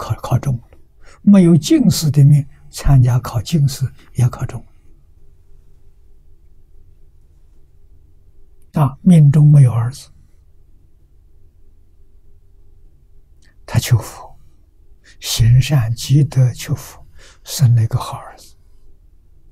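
An elderly man speaks calmly and warmly into a close microphone, with long pauses.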